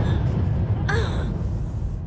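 A young girl gasps in fright.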